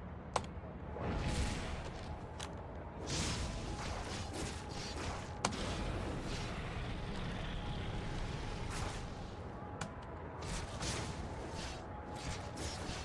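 Blasts and impacts crackle in a video game fight.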